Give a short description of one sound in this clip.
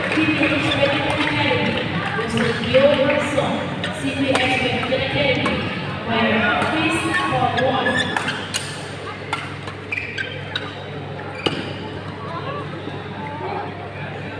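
Rackets strike a shuttlecock with sharp taps in a large echoing hall.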